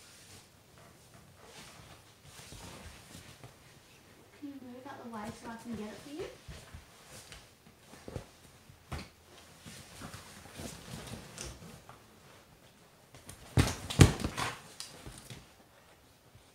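A dog scrambles and rustles about on a leather couch.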